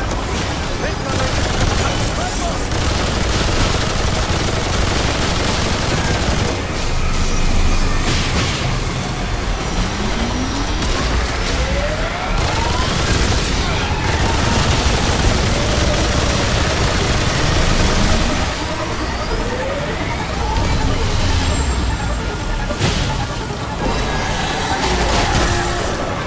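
A heavy gun fires in rapid bursts.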